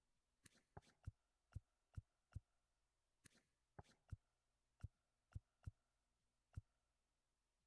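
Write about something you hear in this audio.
Short soft clicks tick again and again.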